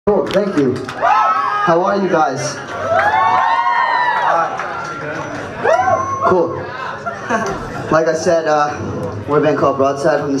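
A band plays live music loudly.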